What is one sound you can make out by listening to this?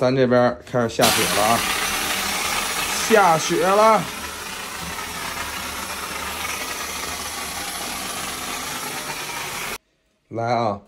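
A pressure washer sprays water in a loud, steady hiss.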